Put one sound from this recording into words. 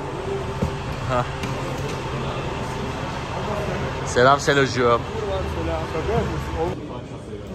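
Young men talk and call out nearby.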